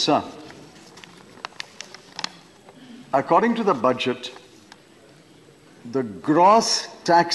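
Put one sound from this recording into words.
An elderly man speaks deliberately through a microphone, with pauses between phrases.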